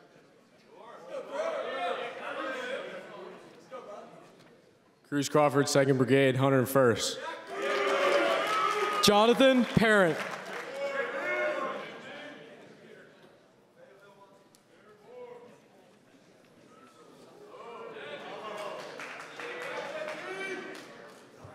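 A young man speaks through a loudspeaker in a large hall.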